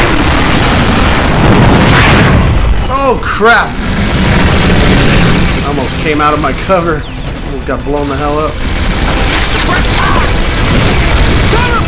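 Explosions and gunfire rumble loudly.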